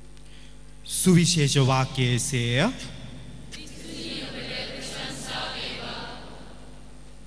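A man speaks into a microphone, heard through loudspeakers.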